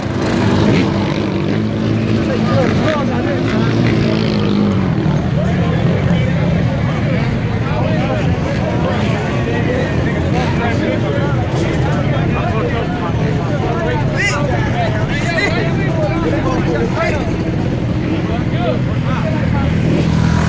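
A crowd of young men talk and shout loudly outdoors.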